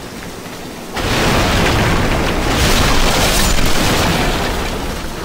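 Wooden crates and barrels smash and splinter with a loud crash.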